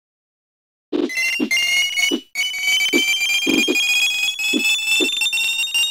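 Coins chime in quick bursts as they are collected.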